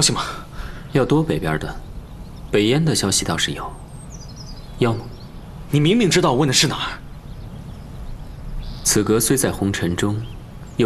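A young man answers calmly, close by.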